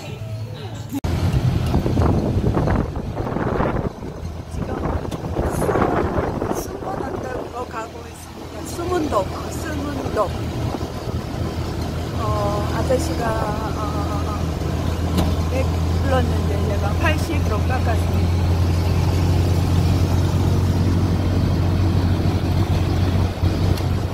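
A motor rickshaw engine rumbles and putters steadily while driving.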